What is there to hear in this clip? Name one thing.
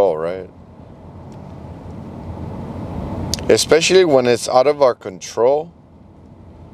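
A man speaks calmly and close into a clip-on microphone.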